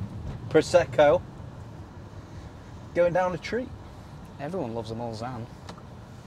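A young man speaks close by, in short bursts.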